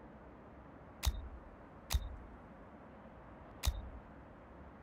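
Short interface clicks sound as menus open.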